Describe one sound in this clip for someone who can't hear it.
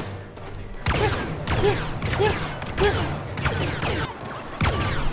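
A blaster rifle fires repeated sharp bursts that echo off cave walls.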